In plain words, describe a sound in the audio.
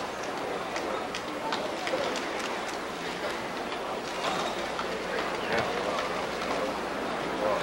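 Uneven bars clank and rattle as a gymnast swings and releases in a large echoing hall.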